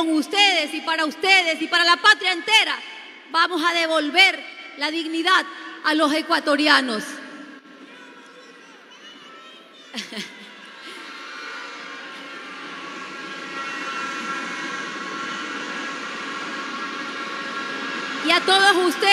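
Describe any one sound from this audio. A young woman speaks loudly and with animation through a loudspeaker in a large echoing hall.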